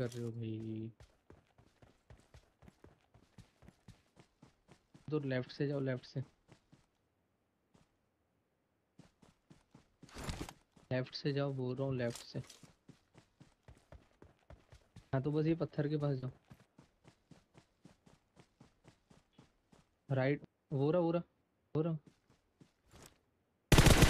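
Footsteps thud quickly and evenly on the ground.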